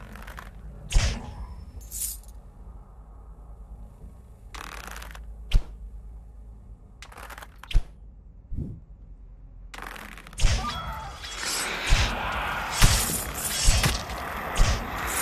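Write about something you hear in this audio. Arrows strike with sharp thuds.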